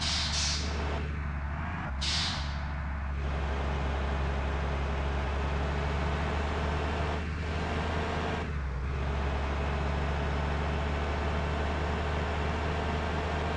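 A bus engine hums steadily as the bus speeds along a road.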